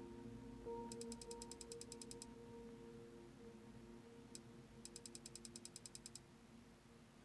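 Rapid soft clicks tick in quick bursts.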